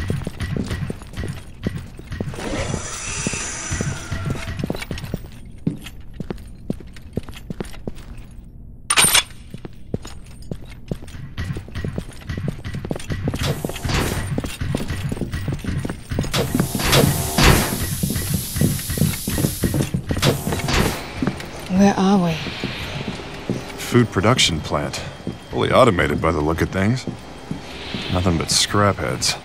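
Heavy footsteps clank on a metal floor at a steady walking pace.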